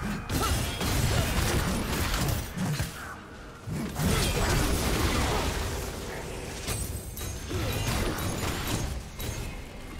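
Magic spell effects whoosh and crackle in a fast game battle.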